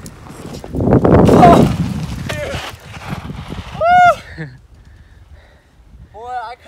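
Bicycle tyres roll and rumble over grass and dirt, passing close by and moving away.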